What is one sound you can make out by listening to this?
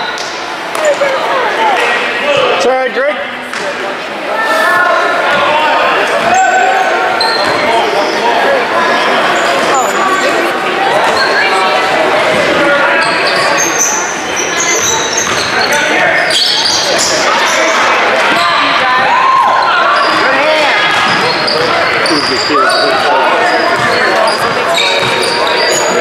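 Spectators shout and call out from the side of the court.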